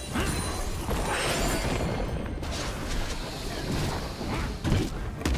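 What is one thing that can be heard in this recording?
Magic spell effects crackle and whoosh in a fast fight.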